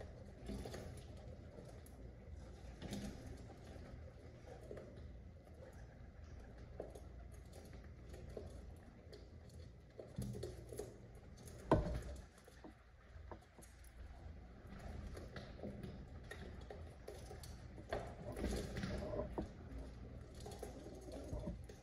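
Pigeons coo softly.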